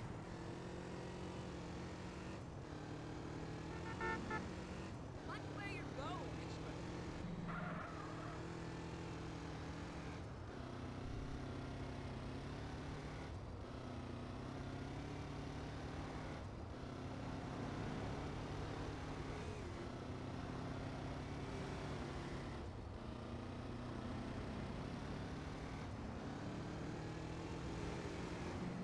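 A motorcycle engine drones steadily, its pitch rising and falling as it shifts gears.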